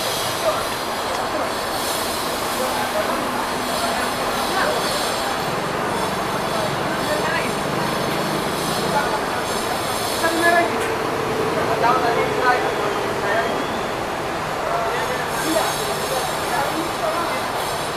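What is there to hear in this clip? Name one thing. Men talk nearby amid a busy outdoor murmur.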